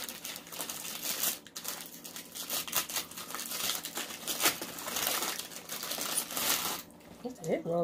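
A paper wrapper crinkles.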